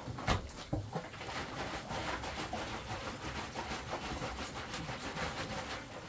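A plastic sack rustles.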